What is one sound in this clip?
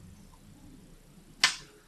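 Stones clatter as a hand gathers them.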